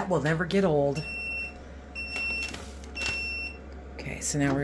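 An appliance beeps several times.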